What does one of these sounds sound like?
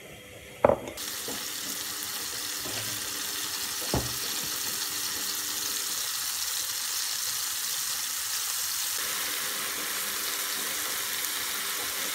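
Tomatoes sizzle and crackle in hot oil.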